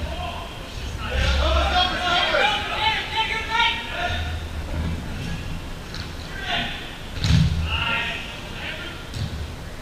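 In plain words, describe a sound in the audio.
Young men shout to one another in a large echoing hall.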